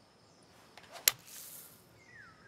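A golf club strikes a ball out of sand with a sharp swish.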